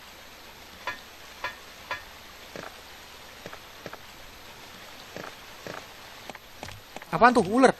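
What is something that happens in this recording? Footsteps tap on stone at a steady pace.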